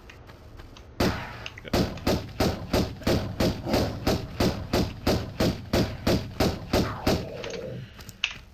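Footsteps thud quickly and evenly on stone.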